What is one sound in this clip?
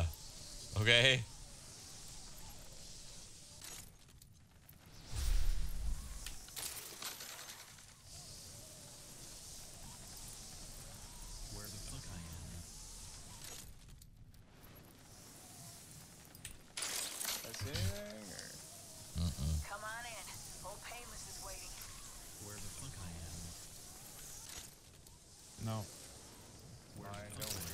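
A young man talks into a microphone close by, casually and now and then.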